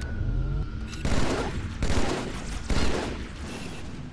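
A rifle fires several loud, booming shots.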